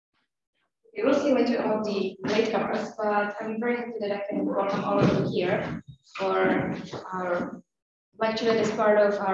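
A young woman speaks calmly through a microphone and loudspeakers in an echoing hall.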